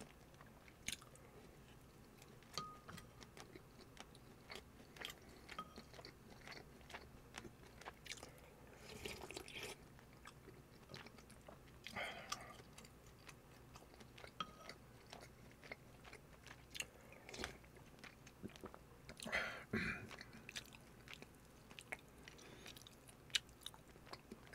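A metal spoon clinks against a ceramic bowl.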